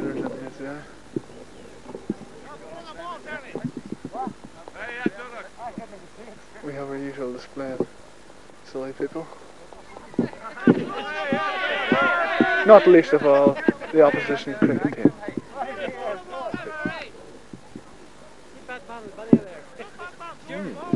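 Several men and women chat and laugh together outdoors.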